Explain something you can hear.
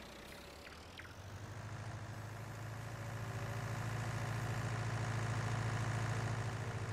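A tractor engine rumbles and grows louder as it speeds up.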